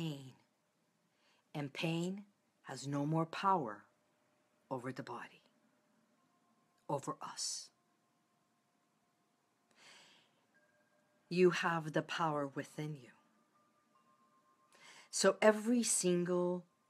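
A middle-aged woman speaks calmly and closely into a microphone, in short phrases with pauses.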